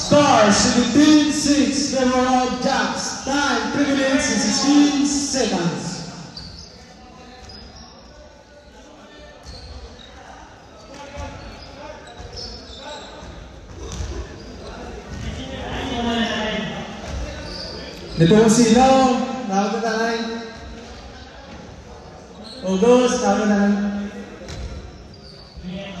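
A group of young women chant and cheer loudly in an echoing hall.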